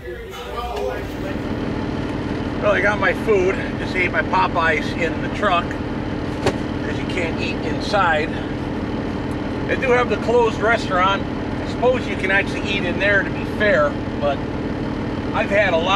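An engine idles with a steady hum.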